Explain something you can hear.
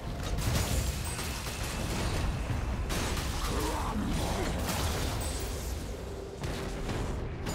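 Game spell effects crackle and burst rapidly.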